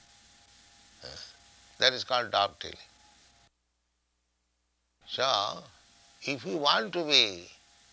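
An elderly man speaks slowly and deliberately, close to a microphone.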